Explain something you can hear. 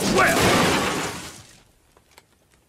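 A heavy crash bursts out with a rushing roar that quickly dies away.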